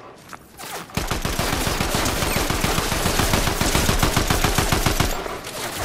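An automatic rifle fires rapid, steady bursts.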